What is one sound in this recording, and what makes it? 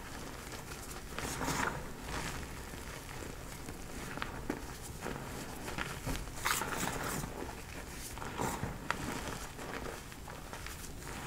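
Hands squeeze and crunch through soft powder, with soft squeaks and crumbling.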